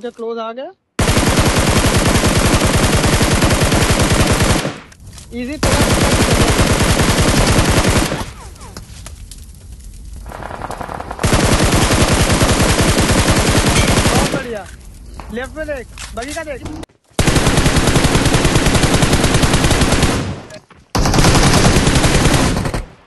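An automatic rifle fires in long rapid bursts.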